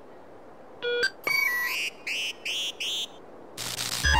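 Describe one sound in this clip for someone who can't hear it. A handheld device beeps with short electronic tones.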